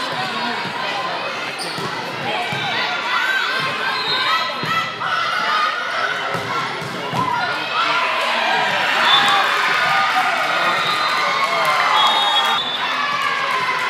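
Young women call out and chatter throughout a large echoing gym.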